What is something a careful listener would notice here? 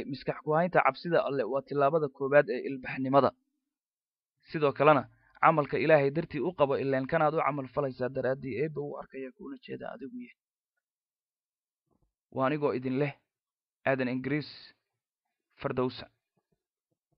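A man speaks calmly and clearly.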